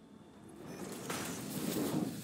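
Sparks crackle and hiss as metal pipe is joined.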